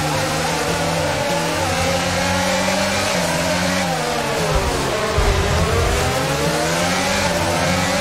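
Other racing cars roar close by.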